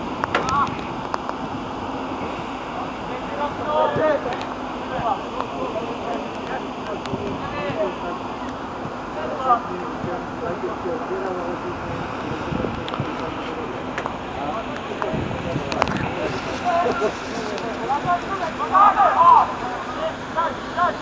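Young men shout to each other across a wide outdoor field.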